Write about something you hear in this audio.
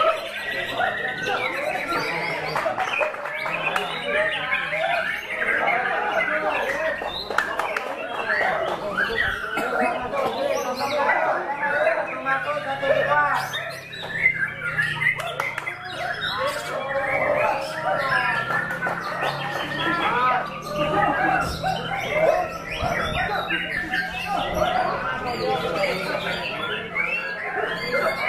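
A songbird sings loud, varied whistling phrases close by.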